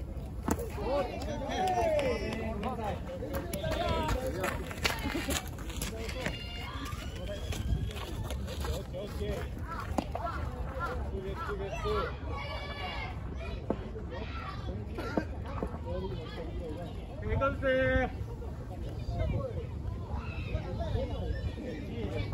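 Young players shout and call out outdoors across an open field.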